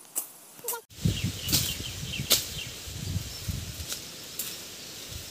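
Leafy branches rustle as they are pushed aside.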